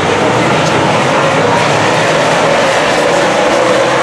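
A race car roars past up close.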